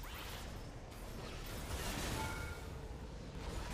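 Magic spell effects whoosh and chime in a video game.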